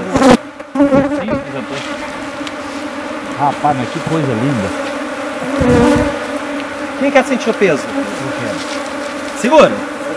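Several adults talk and call out nearby, outdoors.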